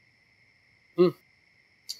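A man says a short word nearby.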